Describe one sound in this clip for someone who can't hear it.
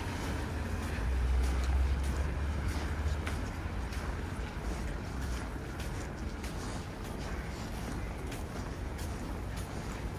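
Cars pass by on a street with a low rumble.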